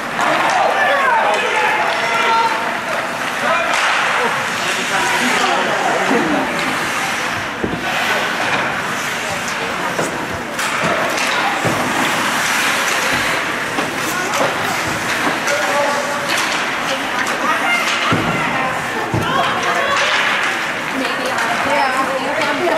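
Ice skates scrape and carve across ice in an echoing arena.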